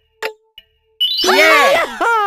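A bright magical chime sparkles.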